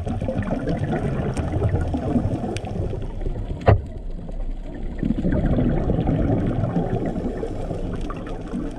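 Water rumbles and murmurs steadily underwater.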